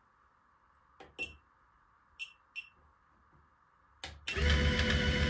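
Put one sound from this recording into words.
A power supply clicks and beeps as its buttons are pressed.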